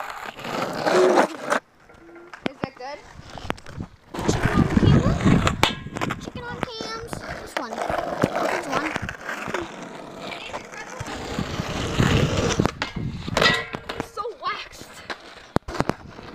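A skateboard clatters against the ground.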